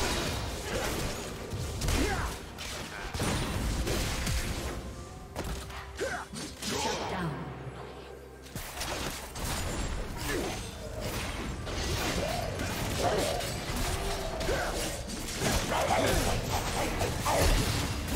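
Game spells and weapon strikes clash in a busy battle.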